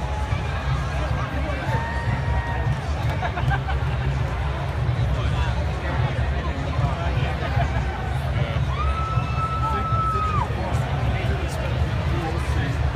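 A marching band's horns play loudly outdoors.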